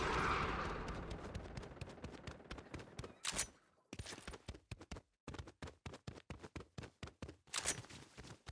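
Quick footsteps patter on a hard wet surface.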